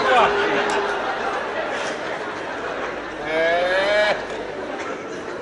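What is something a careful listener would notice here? A man talks loudly and with animation in a slightly echoing room.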